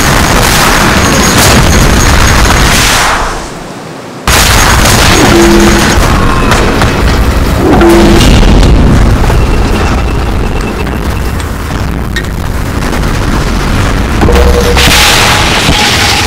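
Soldiers clash in a noisy battle with swords and explosions.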